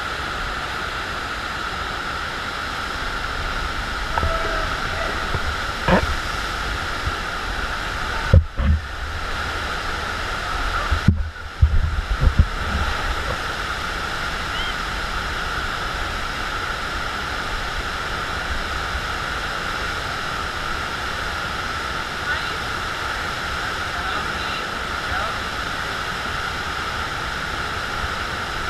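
Rushing water roars steadily in a large echoing hall.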